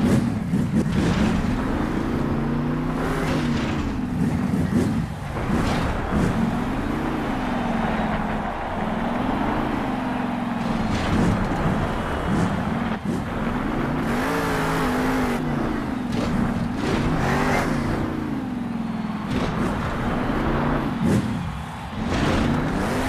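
A monster truck engine roars and revs up and down.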